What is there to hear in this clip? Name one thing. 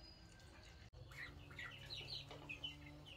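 Chicks cheep in short high chirps.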